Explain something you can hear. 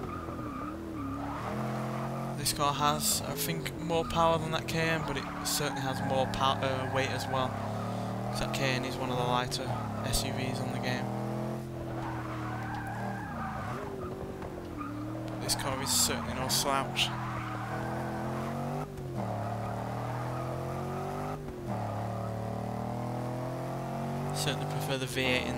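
A car engine roars, revving up and dropping as gears change.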